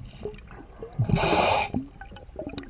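Water bubbles and churns close by.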